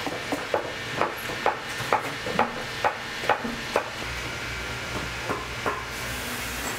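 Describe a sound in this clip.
A sewing machine needle thumps through thick leather in a steady rhythm.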